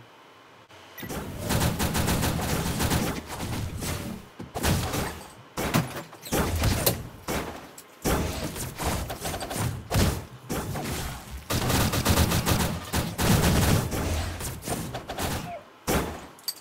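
Game battle effects blast, crash and whoosh with loud impacts.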